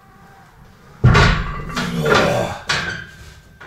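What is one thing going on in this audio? A heavy barbell clanks into a metal rack.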